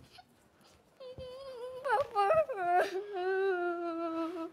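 A man wails loudly in anguish nearby.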